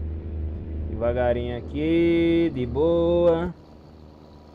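A young man speaks loudly through a microphone.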